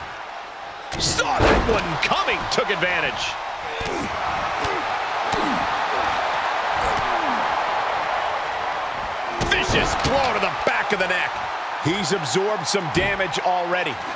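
Heavy thuds of bodies slam onto a wrestling ring mat.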